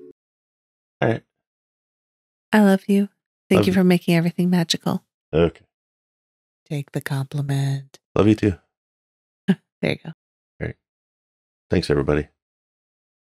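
A woman speaks brightly close to a microphone.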